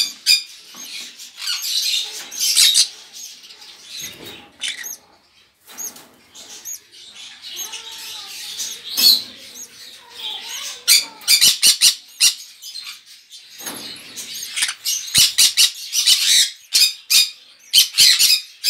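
Parakeets chirp and squawk in shrill bursts close by.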